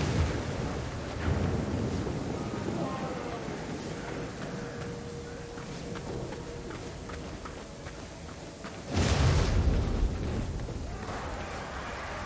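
A torch flame crackles.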